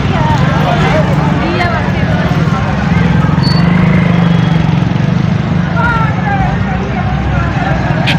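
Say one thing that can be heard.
Motorbike engines hum and putter along a street.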